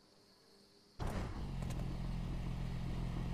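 A car engine idles low.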